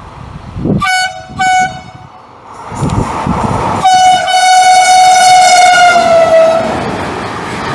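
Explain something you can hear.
A train horn blows two short blasts and then a long, loud blast.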